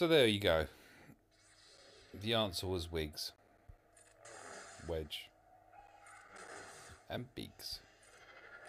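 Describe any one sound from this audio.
Laser swords hum and swoosh as they swing.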